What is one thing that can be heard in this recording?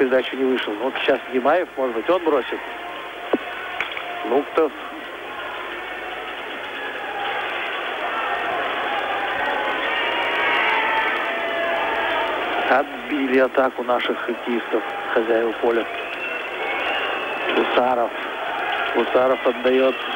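Ice skates scrape and glide across an ice rink.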